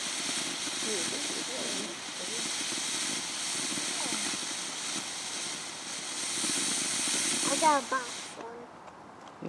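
A firework fountain hisses and sprays steadily.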